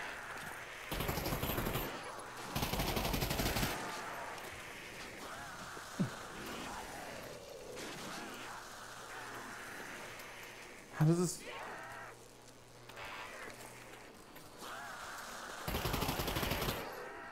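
Gunshots fire in loud bursts.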